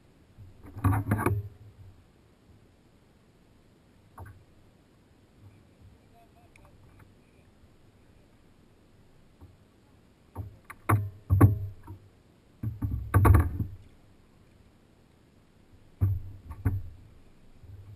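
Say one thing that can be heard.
A fish thrashes and thumps against a plastic kayak close by.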